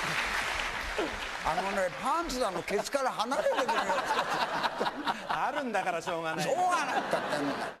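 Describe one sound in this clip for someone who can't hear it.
An elderly man speaks loudly and with animation.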